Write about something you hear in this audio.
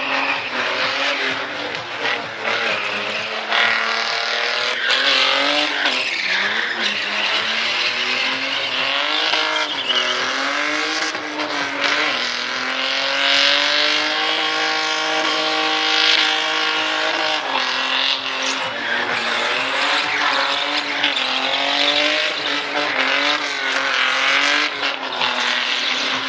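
Tyres screech loudly as they spin on the track.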